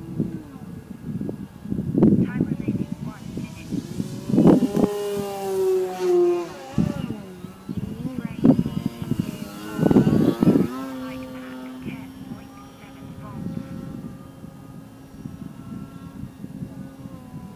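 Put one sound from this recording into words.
A small model plane engine buzzes overhead, rising and falling in pitch as it flies past.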